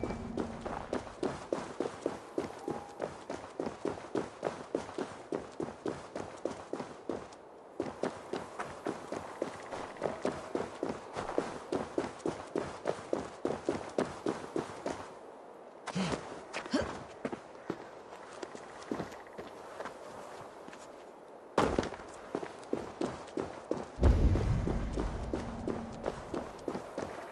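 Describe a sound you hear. Footsteps crunch quickly over snowy ground.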